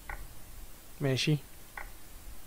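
A man speaks briefly, close to a microphone.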